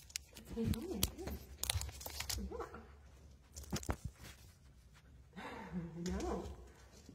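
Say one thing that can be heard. Dry leaves rustle and crackle underfoot.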